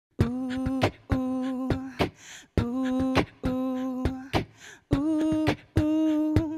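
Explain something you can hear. A young woman beatboxes sharp clicks and pops into a close microphone.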